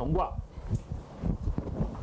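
An eraser rubs against a chalkboard.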